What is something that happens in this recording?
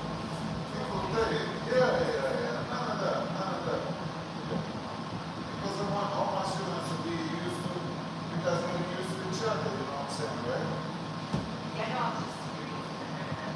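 A woman talks calmly nearby in an echoing room.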